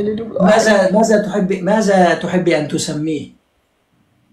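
A young woman talks with animation over an online call.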